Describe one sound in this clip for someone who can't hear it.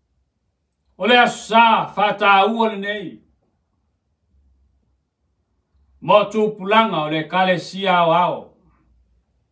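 A middle-aged man speaks slowly and solemnly into a microphone, in short phrases with long pauses.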